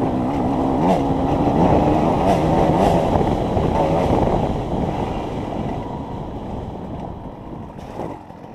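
Tyres rumble over bumpy dirt.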